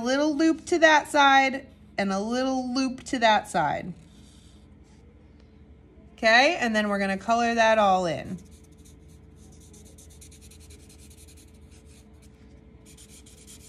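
A felt-tip marker squeaks and scratches on paper.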